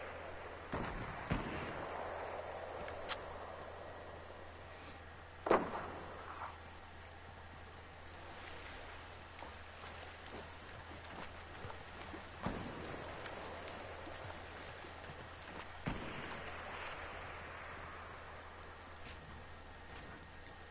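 A game character's footsteps patter on the ground.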